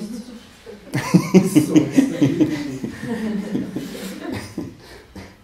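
An elderly man laughs heartily.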